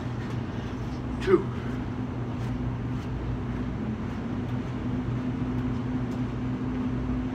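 Footsteps climb concrete steps outdoors.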